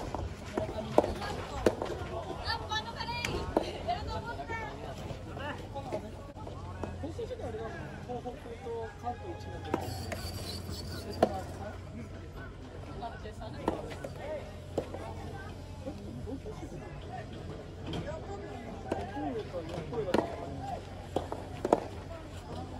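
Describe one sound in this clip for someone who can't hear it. Tennis balls pop sharply off rackets in a rally.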